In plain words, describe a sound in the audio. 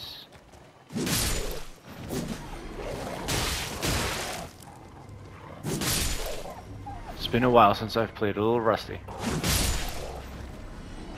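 Weapons strike and slash in a fight.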